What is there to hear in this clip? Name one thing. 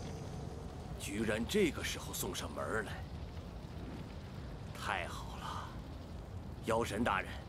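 A middle-aged man speaks with menace, loud and close.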